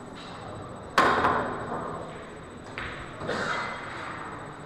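Pool balls clack together and roll across the table.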